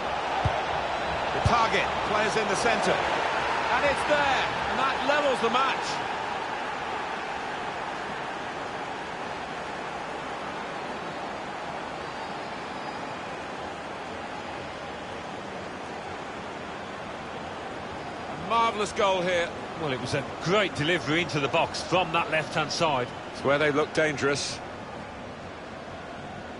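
A crowd roars and cheers in a stadium.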